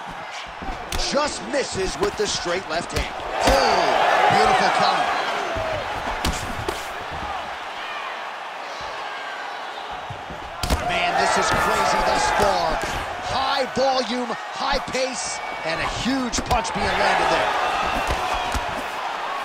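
Punches thud against a fighter's body.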